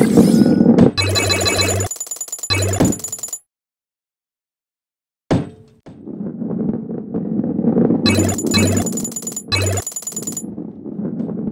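Coins chime as they are picked up.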